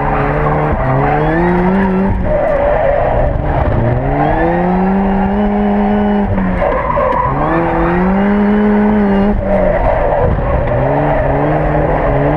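Car tyres squeal on tarmac during tight turns.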